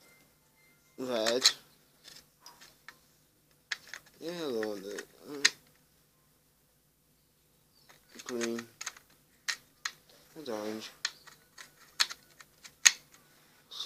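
Small plastic caps click as they are pressed into place.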